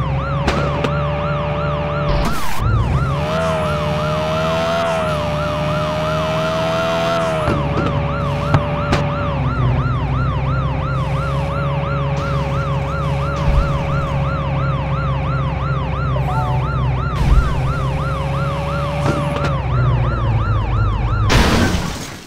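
A police siren wails steadily, rising and falling fast.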